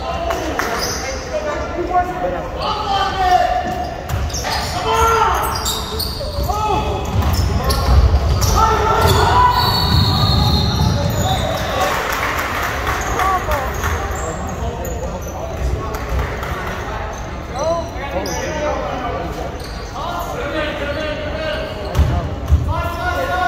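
Spectators shout and cheer throughout, echoing in a large hall.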